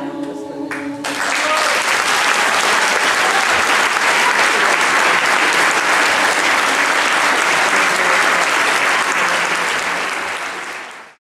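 An audience claps and cheers loudly in a hall.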